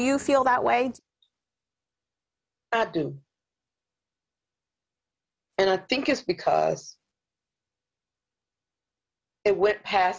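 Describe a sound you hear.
A middle-aged woman speaks calmly over an online call, in short bursts with pauses.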